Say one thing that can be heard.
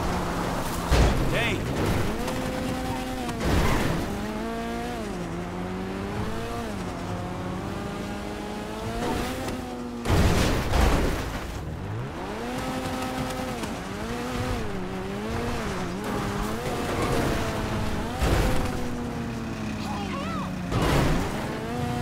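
A vehicle thuds heavily as it lands after jumps.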